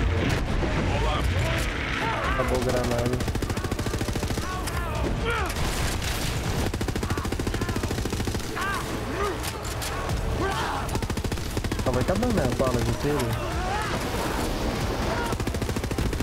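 A young man talks with animation through a microphone.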